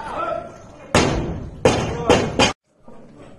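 A loaded barbell crashes onto the floor with heavy thuds.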